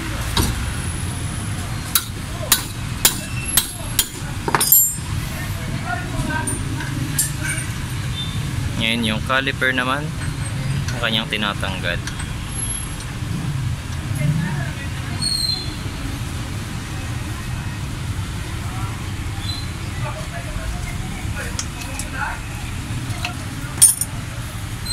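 A wrench clinks and clanks against metal parts.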